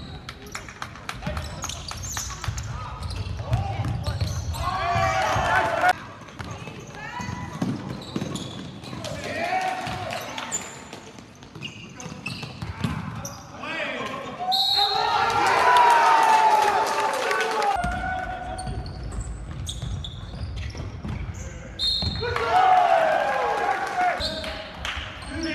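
Sneakers squeak sharply on a hard court floor, echoing in a large hall.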